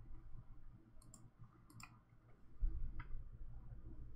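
Buttons on a game controller click under a player's thumbs.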